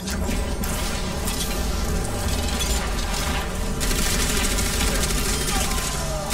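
Video game energy weapons zap and crackle rapidly.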